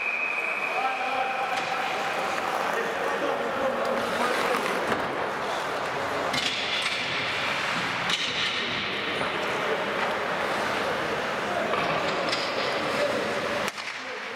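Men call out to each other across the rink.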